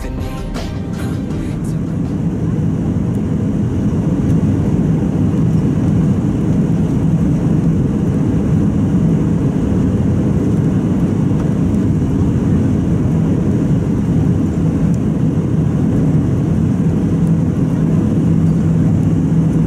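A jet engine roars steadily as an airliner descends, heard from inside the cabin.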